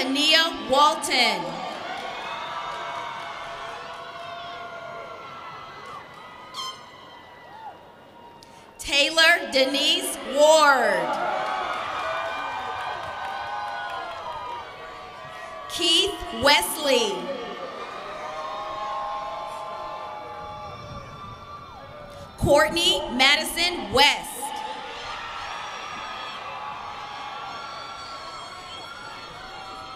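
A crowd cheers and screams loudly outdoors in bursts.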